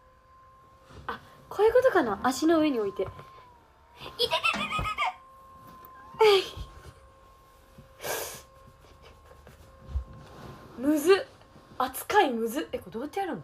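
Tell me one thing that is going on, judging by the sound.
A young woman laughs and shouts playfully close by.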